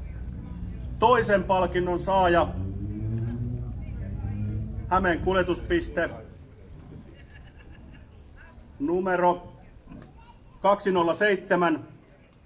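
A man speaks through a microphone and loudspeakers outdoors, in short bursts with pauses.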